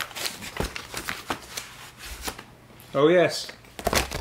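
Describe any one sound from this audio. Cardboard and plastic sleeves rustle and tap as they are handled.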